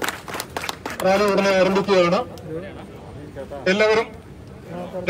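A man speaks loudly into a microphone through a loudspeaker outdoors.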